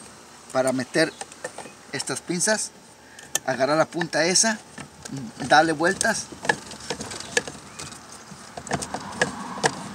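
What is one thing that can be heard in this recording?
Metal pliers click and scrape against a plastic fuel tank.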